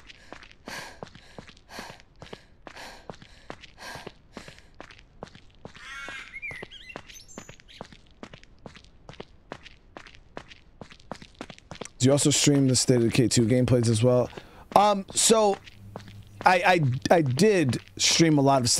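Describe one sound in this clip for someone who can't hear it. Footsteps run quickly and steadily on a hard road.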